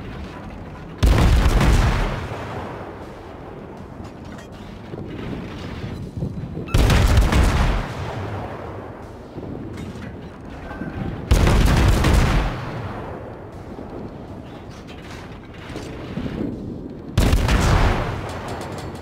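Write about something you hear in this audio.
Big naval guns fire loud booming salvos that rumble away.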